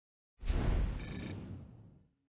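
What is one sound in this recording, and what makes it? A game interface plays a bright chime.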